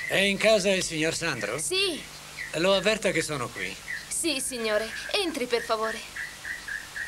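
A woman speaks with animation.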